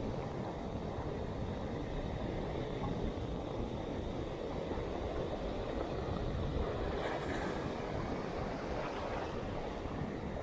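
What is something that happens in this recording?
Wind blusters outdoors across a microphone.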